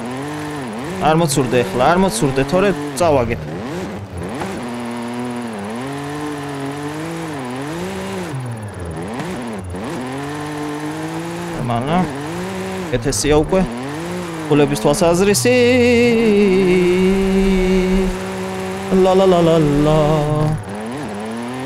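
Tyres squeal loudly as a car slides through bends.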